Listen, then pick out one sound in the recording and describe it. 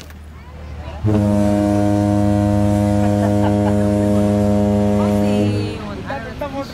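A paddle steamer's whistle blows loudly and steadily, then stops.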